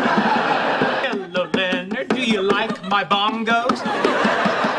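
Bongo drums are tapped quickly by hand.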